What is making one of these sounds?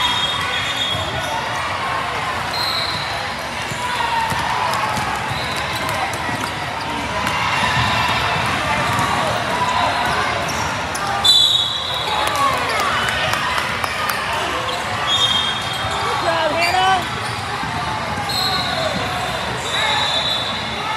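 A crowd of spectators murmurs and calls out throughout a large echoing hall.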